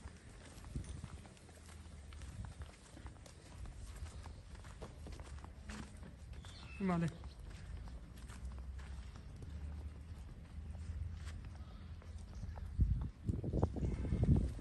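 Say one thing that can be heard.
A cow's hooves step softly on dry dirt.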